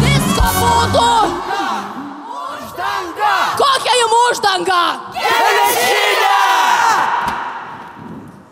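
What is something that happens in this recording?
A chorus of men and women sings loudly.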